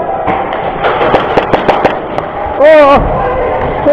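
An airsoft gun fires sharp shots in a large echoing hall.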